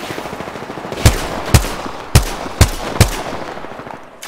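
Sharp rifle shots crack in quick succession.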